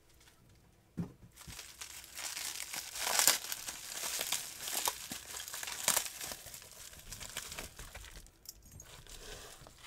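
Plastic bubble wrap crinkles and rustles as hands unwrap it.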